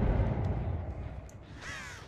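A crow caws nearby.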